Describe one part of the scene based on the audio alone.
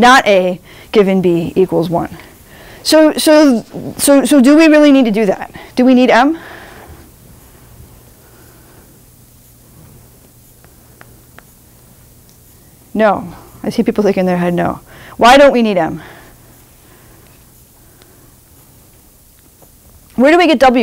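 A young woman speaks calmly to an audience, with long pauses.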